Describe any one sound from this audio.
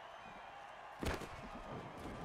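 Football players collide with a heavy thud.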